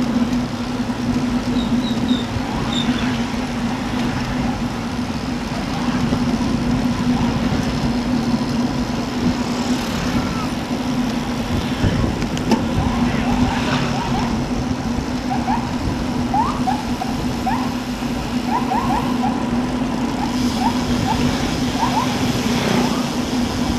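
Bicycle tyres hum on asphalt.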